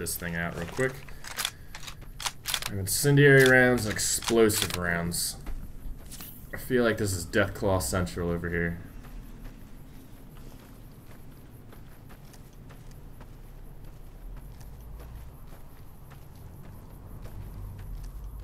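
Footsteps crunch steadily on loose gravel.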